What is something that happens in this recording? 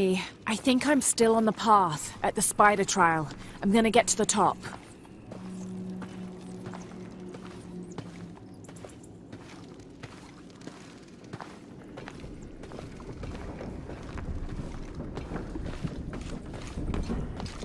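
Footsteps crunch on a stony cave floor.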